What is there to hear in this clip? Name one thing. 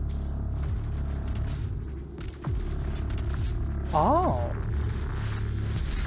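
A low mechanical hum drones steadily.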